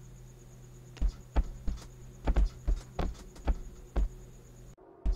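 Footsteps tap on a floor at an even pace.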